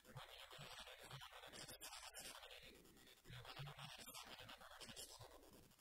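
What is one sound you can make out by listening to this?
A man speaks calmly into a microphone in a large, echoing room.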